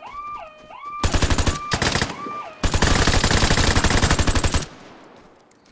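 Automatic rifle fire rattles in rapid bursts.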